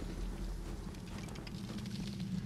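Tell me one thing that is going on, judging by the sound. Ice shatters with a glassy, crackling burst.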